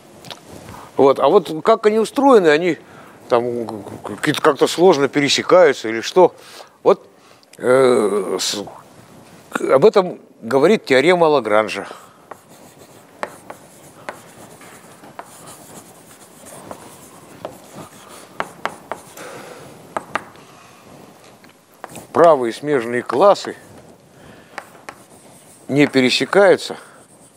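A man lectures calmly in an echoing room.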